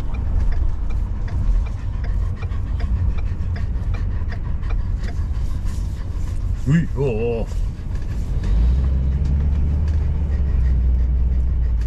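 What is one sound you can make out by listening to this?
A car rumbles low and steadily along the road, heard from inside.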